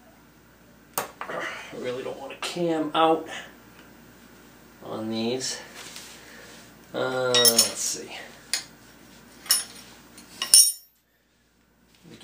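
Metal tools clink and scrape against a metal part.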